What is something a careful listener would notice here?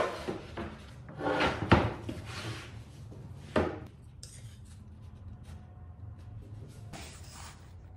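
Wooden boards knock and thud against a workbench.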